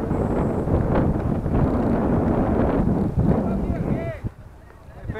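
Wind blusters against the microphone outdoors.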